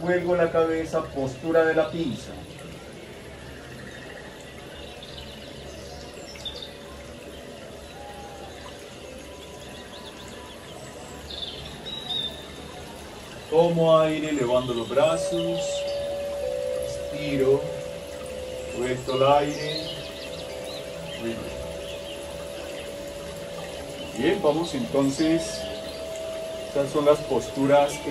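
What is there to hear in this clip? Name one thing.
An elderly man speaks calmly and slowly, as if guiding an exercise.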